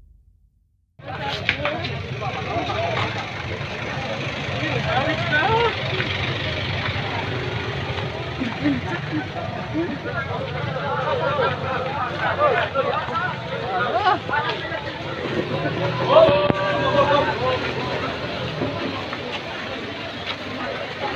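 A crowd of men and women murmurs and calls out outdoors.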